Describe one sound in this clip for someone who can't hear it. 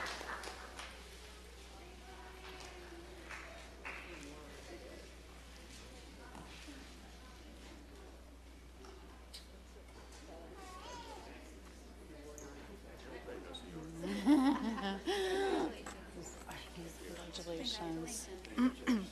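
Men and women chat quietly in the hall.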